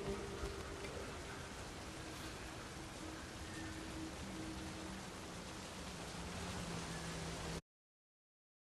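Water laps gently against a shore.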